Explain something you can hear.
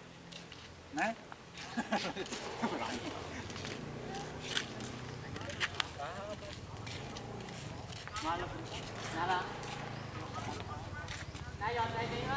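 Several men talk nearby in a group outdoors.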